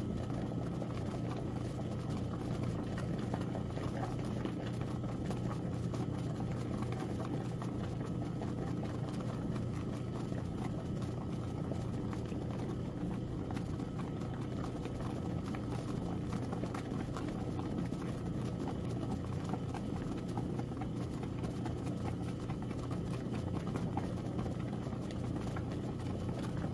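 A washing machine hums steadily as its agitator churns.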